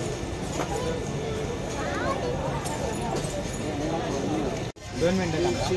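A crowd of adults and children chatter nearby.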